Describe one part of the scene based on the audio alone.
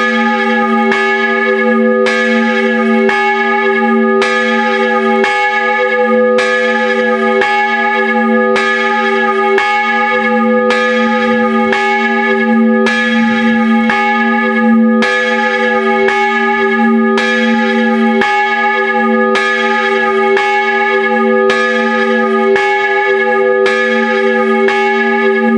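A church bell swings full circle and rings close up, its clapper striking about once a second over a long ringing hum.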